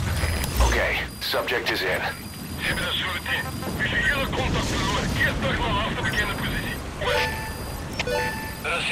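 Short electronic menu beeps sound one after another.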